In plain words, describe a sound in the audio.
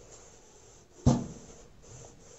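An iron is set down on cardboard with a dull thud.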